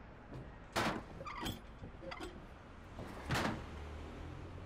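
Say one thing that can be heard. A heavy table thumps down onto a wrestling ring.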